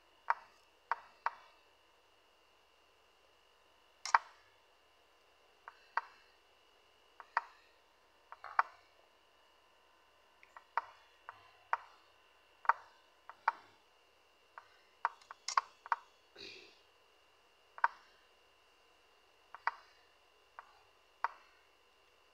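Sharp clicks of chess moves in a computer game come at an uneven, quick pace.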